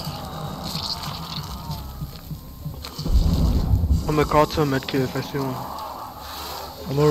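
A young man talks with animation through a microphone on an online call.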